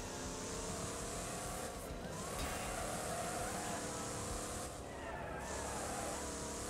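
Tyres hiss and rumble on a rough road.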